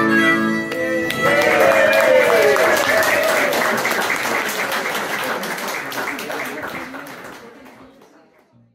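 A small band strums guitars together, and the music slowly fades out.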